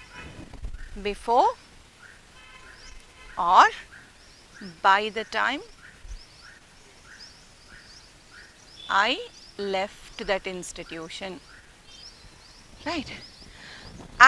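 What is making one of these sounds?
A middle-aged woman speaks slowly and clearly, as if teaching, close by.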